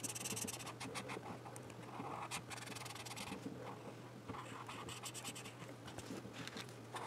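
A marker pen scratches and squeaks across paper in quick strokes.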